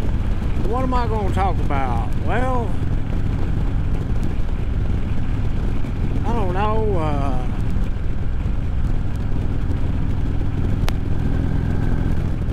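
Wind roars steadily past a moving motorcycle.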